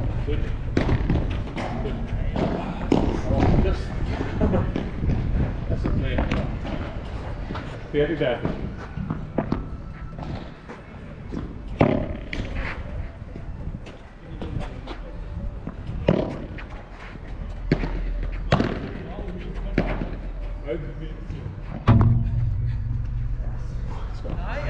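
Men talk casually nearby.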